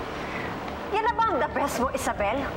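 A young woman speaks angrily and loudly.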